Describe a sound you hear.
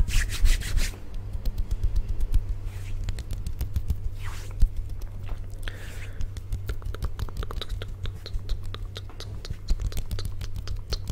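Fingers tap and flutter rapidly close to a microphone.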